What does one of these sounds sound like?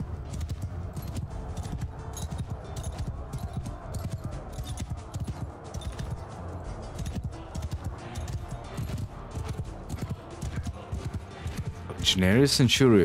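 Horse hooves pound steadily on soft ground.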